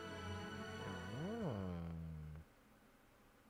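A young man makes a long, drawn-out sliding vocal sound close to a microphone.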